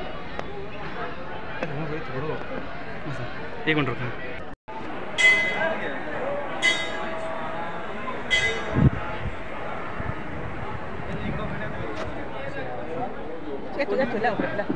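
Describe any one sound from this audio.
A crowd of people talks in a steady murmur outdoors.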